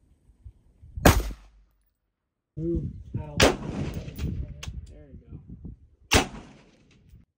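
A rifle fires loud single shots outdoors.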